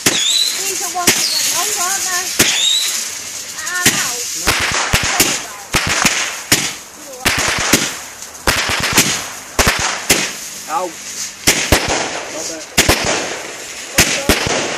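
Fireworks bang and crackle repeatedly, close by.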